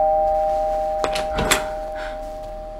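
A door latch clicks and a door opens.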